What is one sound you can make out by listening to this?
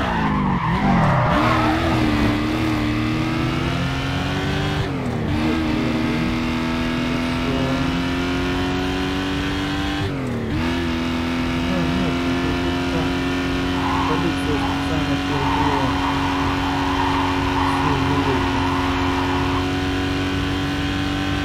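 A car engine roars and climbs in pitch as the car speeds up, dropping briefly at each gear change.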